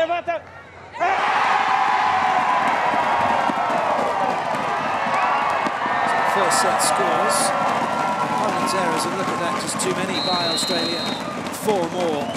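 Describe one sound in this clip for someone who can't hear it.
A large crowd chatters and cheers in an open stadium.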